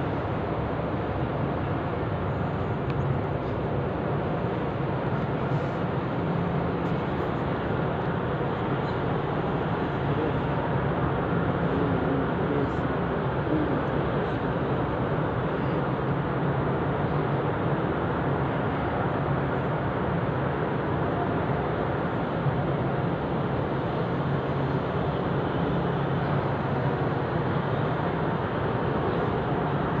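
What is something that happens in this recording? A crowd of people murmurs in a large echoing hall.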